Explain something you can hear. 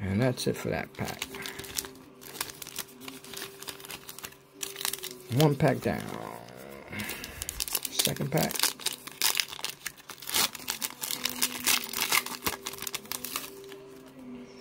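A foil wrapper crinkles and rustles close by.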